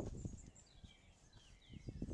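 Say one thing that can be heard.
A gate latch clicks.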